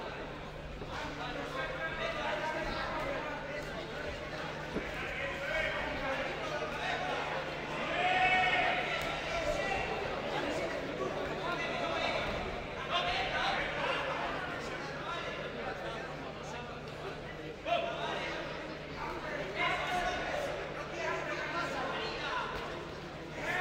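A crowd of spectators shouts and cheers loudly.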